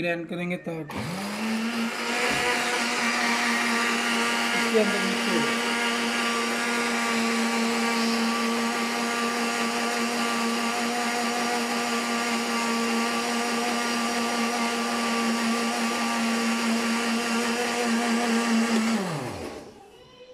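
A blender motor whirs loudly and steadily, then winds down.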